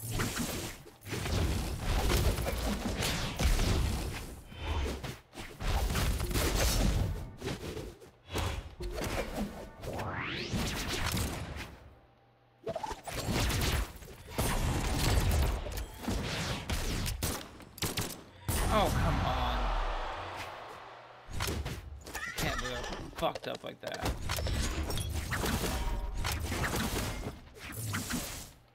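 Cartoon fighters trade punchy hits and whooshing strikes.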